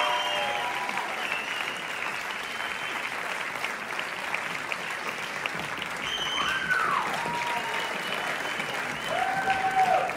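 Performers whoop and cheer loudly in a large echoing hall.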